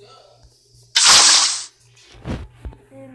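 Water splashes as it is poured out.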